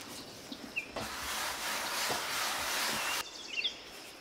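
Flour is scattered across a wooden board with a soft hiss.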